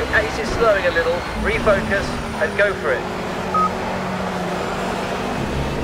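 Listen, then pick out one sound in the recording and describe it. A racing car engine drops in pitch as the car brakes for a corner.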